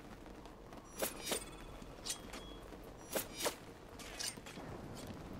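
A thrown blade whooshes through the air several times.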